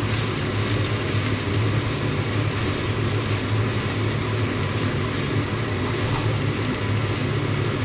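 A wooden spoon stirs and scrapes food in a pot.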